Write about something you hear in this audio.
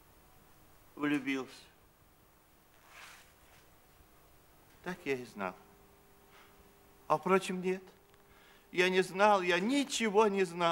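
An elderly man speaks in a deep voice, close by.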